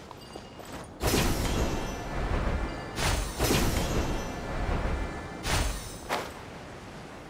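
Air rushes loudly past in a falling plunge.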